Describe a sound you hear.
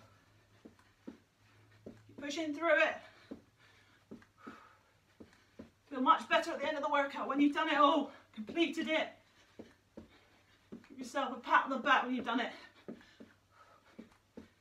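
Feet thump quickly as a woman jumps and steps.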